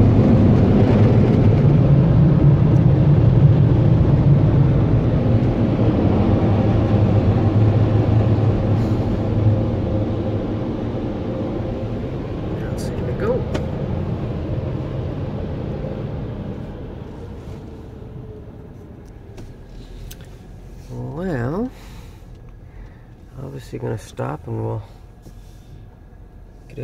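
A car engine hums quietly.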